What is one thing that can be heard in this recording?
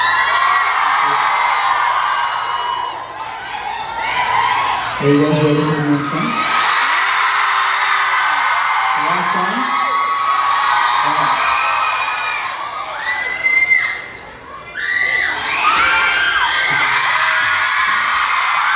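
A live band plays rock music through loud speakers in a large hall.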